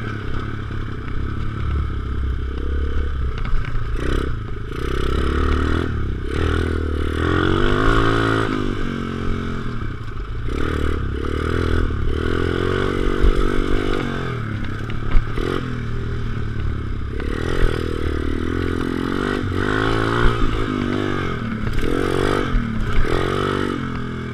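A dirt bike engine buzzes loudly, revving up and down.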